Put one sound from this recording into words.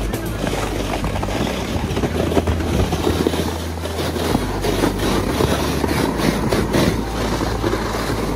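A plastic sled scrapes and hisses as it slides over snow outdoors.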